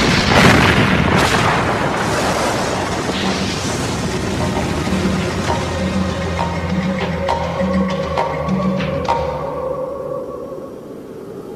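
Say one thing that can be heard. A loud explosion booms and rumbles, then slowly fades.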